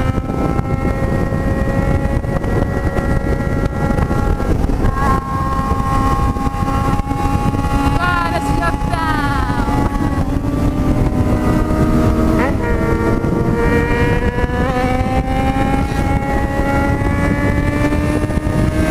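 Wind rushes past loudly.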